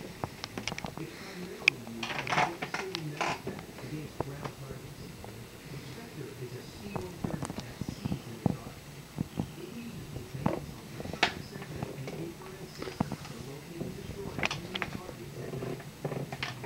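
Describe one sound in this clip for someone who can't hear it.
A cat's claws scratch and scrape on a chair's fabric.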